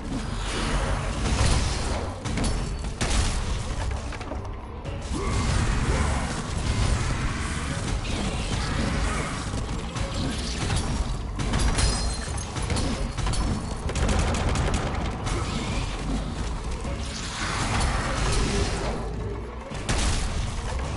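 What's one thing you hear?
Electric crackling bursts flare around a giant creature.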